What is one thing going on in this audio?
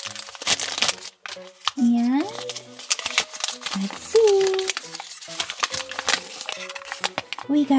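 A foil packet crinkles and rustles in someone's hands.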